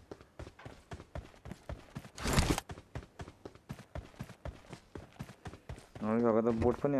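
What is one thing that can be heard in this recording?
Footsteps thud quickly and steadily on the ground.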